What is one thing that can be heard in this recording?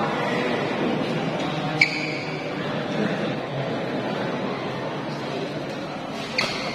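A crowd of spectators murmurs and chatters steadily in a large echoing hall.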